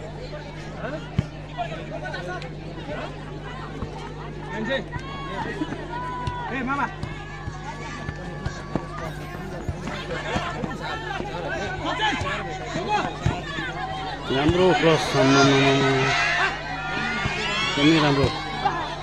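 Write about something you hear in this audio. A football thumps as players kick it.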